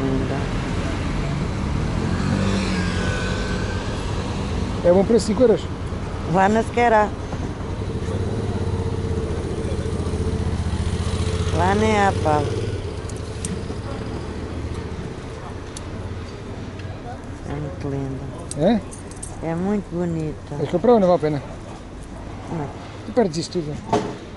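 Metal jewellery clinks softly in a hand.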